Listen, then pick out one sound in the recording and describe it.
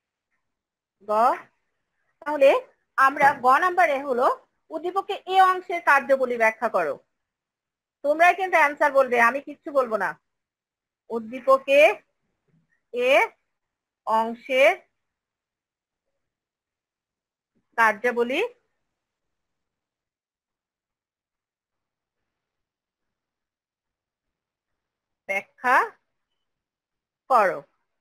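A woman speaks in short phrases, teaching calmly through an online call.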